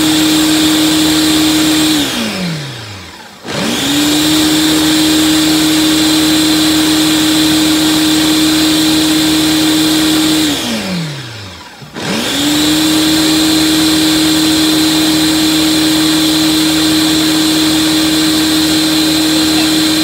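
A blender motor whirs loudly, twice winding down and starting up again.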